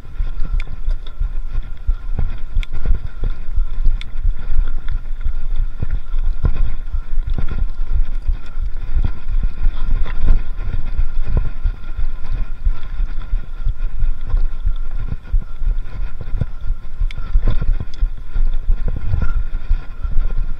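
Bicycle tyres roll and bump over a dirt trail.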